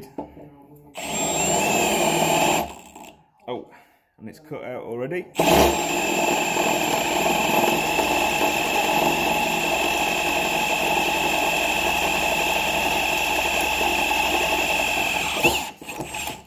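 A cordless drill whirs steadily as it bores into metal.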